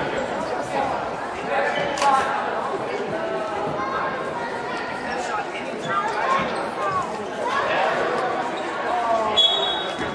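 Several boys talk and call out at once in a large echoing gym.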